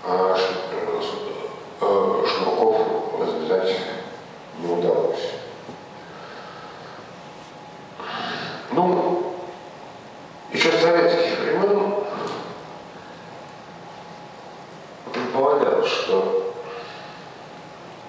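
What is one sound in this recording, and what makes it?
A middle-aged man speaks calmly into a microphone in short bursts, heard through loudspeakers.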